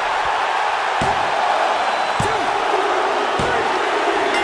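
Slams thud on a wrestling ring's mat.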